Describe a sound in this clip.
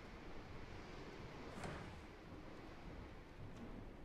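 A wooden door swings open.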